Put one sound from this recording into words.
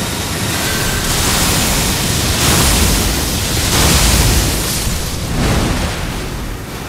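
Lightning crackles and booms in loud bursts.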